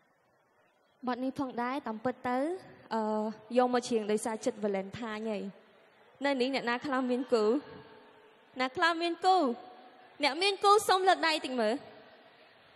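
A young woman sings loudly through a microphone.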